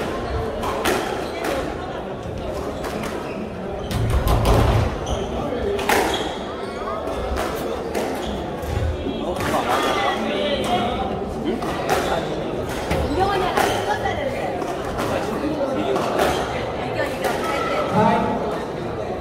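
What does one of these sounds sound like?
A squash ball smacks sharply off the racket and walls, echoing in a hard room.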